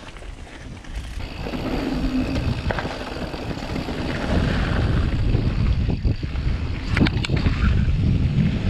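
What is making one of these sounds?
Wind rushes past loudly as the bike picks up speed.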